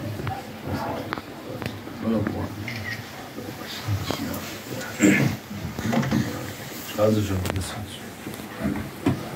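Men murmur quietly among themselves.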